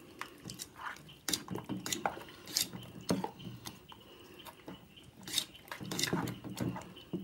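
Fingers squelch and slosh through a wet batter in a metal bowl.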